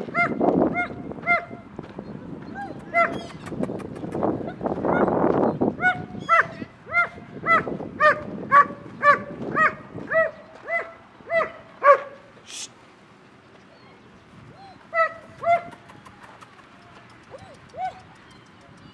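Puppies yelp and whine in short high cries.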